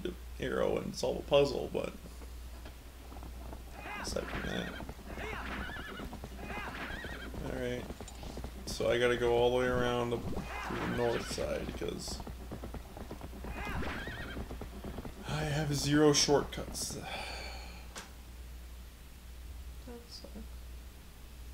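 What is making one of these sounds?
A horse gallops, its hooves clopping on the ground.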